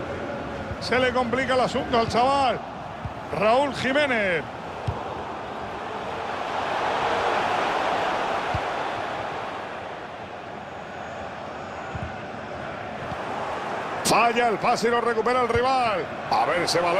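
A stadium crowd roars, swelling and then fading.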